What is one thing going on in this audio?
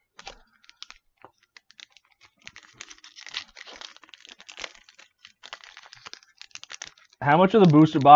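Foil card packaging crinkles and rustles.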